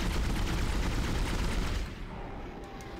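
A gun fires in a loud rushing blast.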